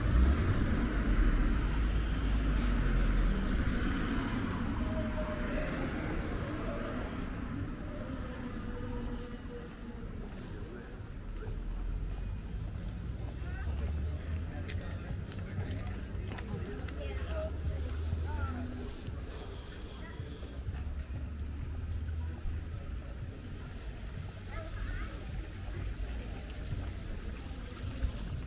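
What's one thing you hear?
Footsteps tap on a pavement outdoors.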